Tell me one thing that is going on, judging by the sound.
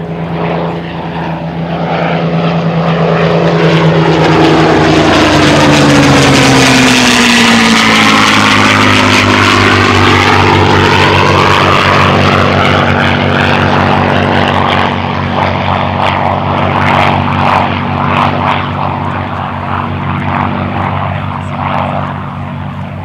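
Propeller plane engines roar loudly overhead, their pitch dropping as they pass.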